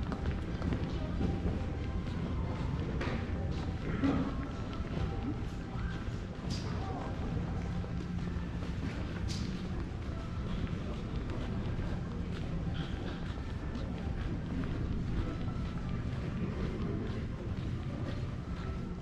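A low, steady hum and murmur fill a large echoing hall.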